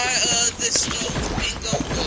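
A pickaxe strikes with a sharp hit.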